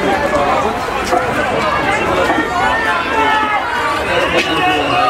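A crowd of men and women talk and shout over one another close by.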